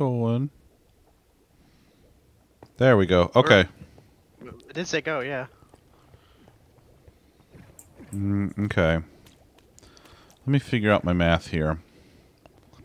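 A man talks with animation into a close microphone, in short bursts.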